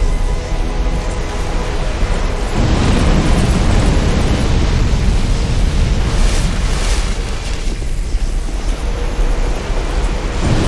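A sword swings through the air with a whoosh.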